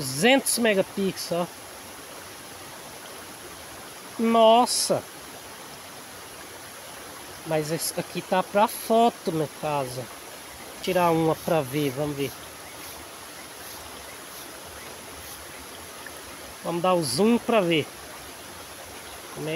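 A stream flows and splashes nearby.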